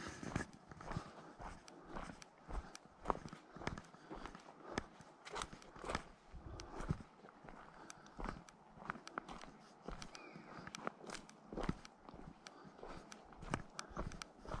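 Footsteps crunch steadily on dry leaves and a dirt path.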